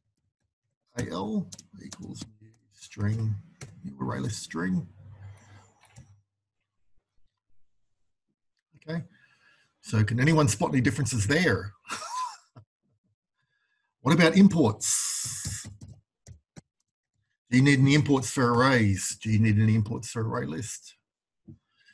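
A man speaks calmly through a microphone, in short phrases with pauses.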